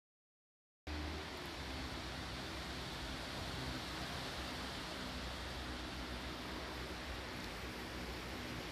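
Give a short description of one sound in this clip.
Wind blows steadily outdoors and rustles leaves.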